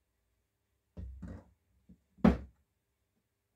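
Metal parts clank as they are set down on a wooden bench.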